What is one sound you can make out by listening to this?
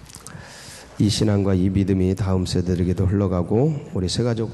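A middle-aged man speaks calmly into a microphone, heard through loudspeakers.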